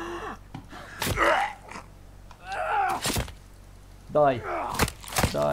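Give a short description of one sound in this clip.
A blade stabs wetly into flesh, again and again.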